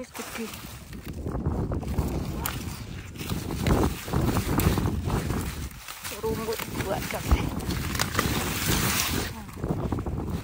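Leaves rustle and brush as a gloved hand pushes through plants.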